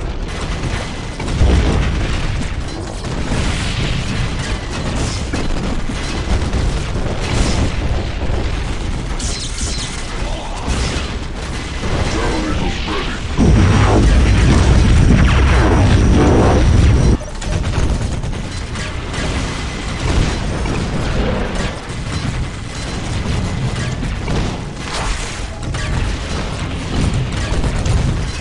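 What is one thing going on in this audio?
Gunfire rattles constantly.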